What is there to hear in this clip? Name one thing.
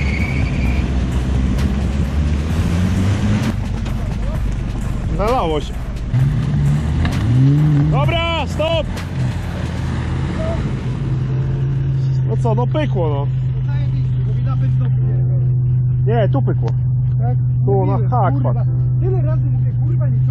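A car engine idles and revs loudly outdoors.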